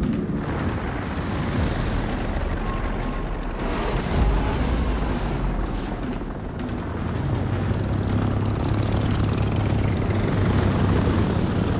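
Propeller planes drone steadily overhead.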